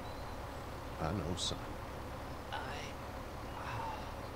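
An elderly man speaks softly and sadly, close by.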